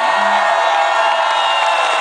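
Young men shout excitedly close by.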